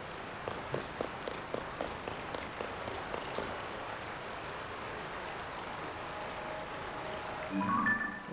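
Water laps gently against wood.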